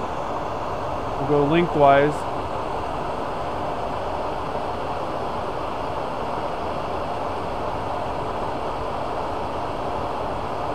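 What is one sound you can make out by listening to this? A lathe motor hums and whirs steadily.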